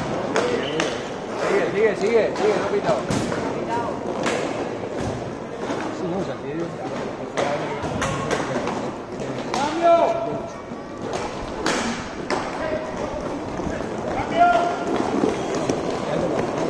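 Young men shout and call out to each other across an open rink.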